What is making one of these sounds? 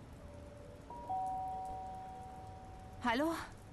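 A doorbell chimes with two tones.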